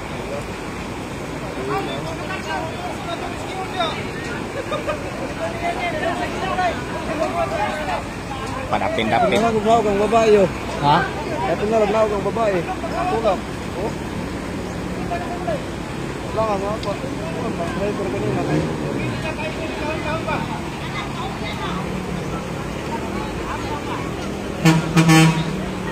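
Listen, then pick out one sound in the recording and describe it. A crowd of men and women talk and call out nearby, outdoors.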